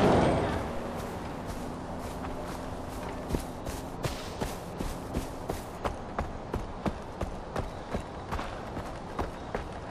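Footsteps crunch steadily on grass and dirt.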